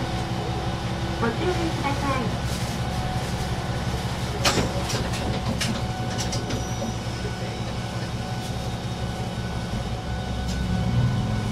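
A train's engine hums steadily while standing still.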